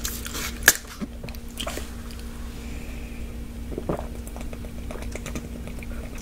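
A man gulps water.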